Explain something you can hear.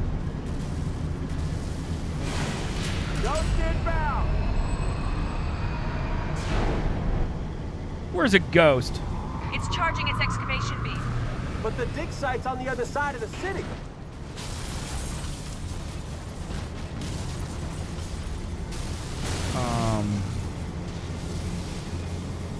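A heavy vehicle's engine rumbles low and steady.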